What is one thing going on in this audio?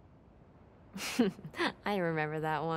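A young woman laughs softly, close by.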